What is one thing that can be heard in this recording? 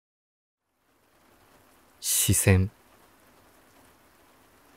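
Small waves lap softly against a shore.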